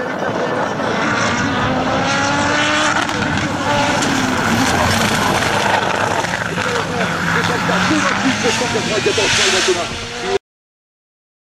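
A racing car engine roars loudly and revs up and down as the car speeds past.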